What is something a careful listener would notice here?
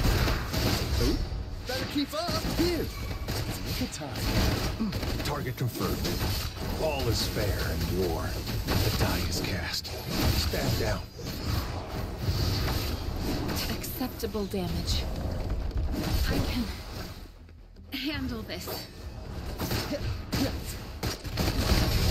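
Magic blasts crackle and boom.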